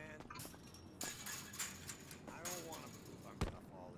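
A chain-link fence rattles as it is climbed.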